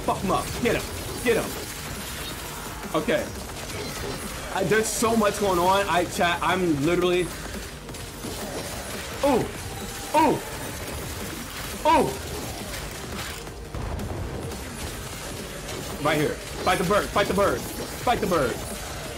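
Game sound effects of magic blasts and clashing swords play.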